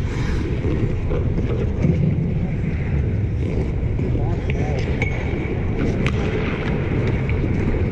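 Hockey sticks clack against the ice and puck.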